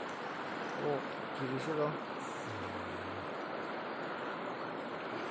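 Water trickles steadily over stones.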